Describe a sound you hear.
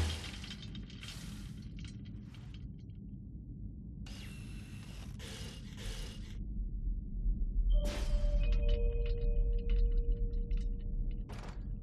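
A hovering robot's jet thruster hisses and rumbles steadily.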